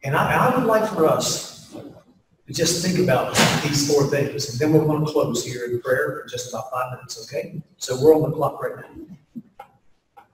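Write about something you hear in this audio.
A man speaks calmly into a microphone over loudspeakers in a large hall.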